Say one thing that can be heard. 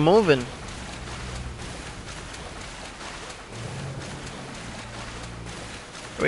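Water ripples and splashes softly as a small animal swims.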